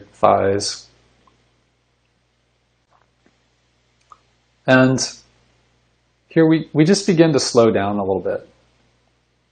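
A middle-aged man speaks calmly and close to the microphone, with pauses, as if over an online call.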